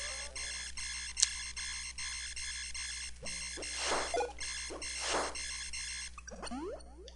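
Bleepy retro video game music plays.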